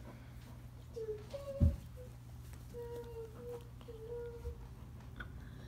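A squeaky toy squeaks in short bursts.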